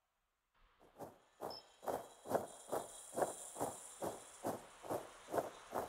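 A fox's paws patter on grass at a run.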